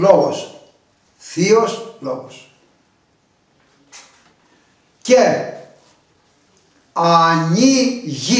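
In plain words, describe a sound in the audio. An elderly man speaks calmly and close by, in short phrases with pauses.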